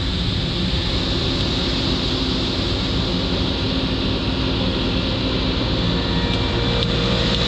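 A truck engine idles nearby with a steady low rumble.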